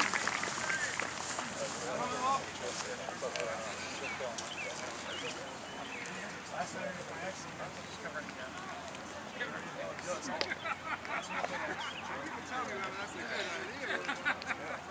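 Young men in a huddle talk loudly with one another.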